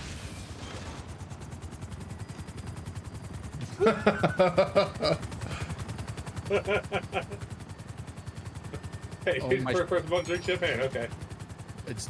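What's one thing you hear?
A helicopter's rotor chops rapidly as the helicopter lifts off and flies.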